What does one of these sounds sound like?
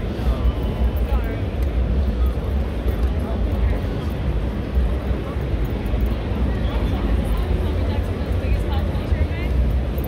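Footsteps shuffle on a hard floor nearby.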